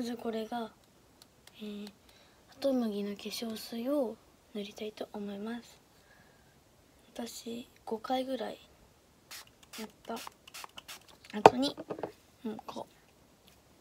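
A young girl talks calmly and close by.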